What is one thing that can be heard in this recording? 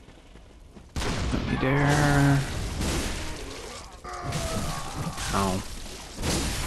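A blade slashes and strikes a body.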